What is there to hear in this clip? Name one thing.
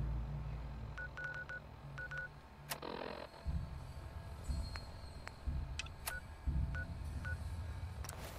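Short electronic beeps sound as a menu is paged through.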